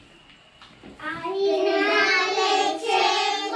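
A group of young children sing together in a room.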